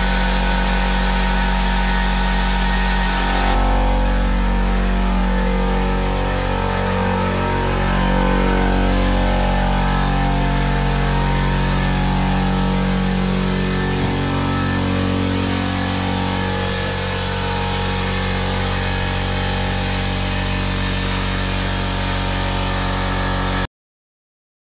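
A polishing machine whirs steadily against a car body.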